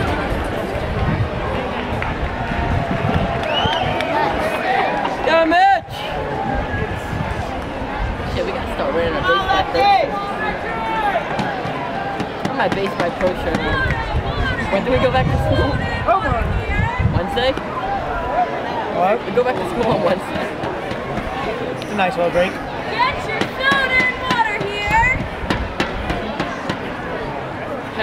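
A crowd murmurs and chatters in an open-air stadium.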